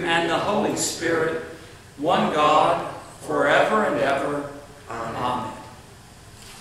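A man reads aloud in a calm voice in an echoing room.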